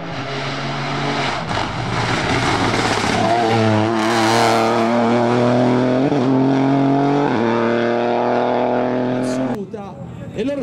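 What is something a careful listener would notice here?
A rally car engine revs hard through gear changes.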